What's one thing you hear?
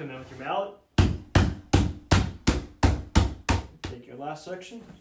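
A mallet knocks rapidly on a plastic crate.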